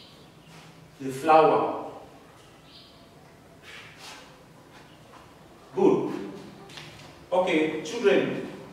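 A young man explains calmly, close by.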